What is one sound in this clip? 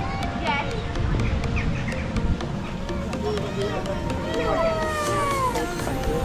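Children chatter.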